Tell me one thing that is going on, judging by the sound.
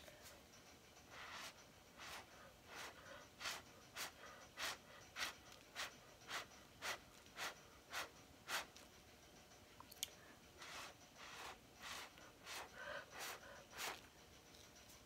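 A stick scrapes and taps across a wet canvas in quick, even strokes.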